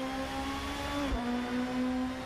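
A racing car engine shifts up a gear with a brief dip in pitch.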